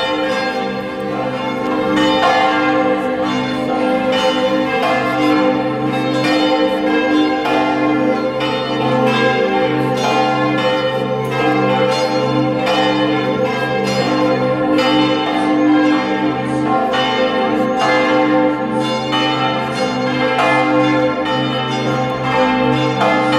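A crowd sings together outdoors.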